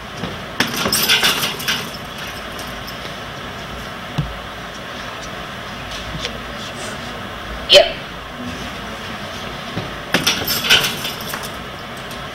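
Kicks and punches thud rapidly against a heavy punching bag.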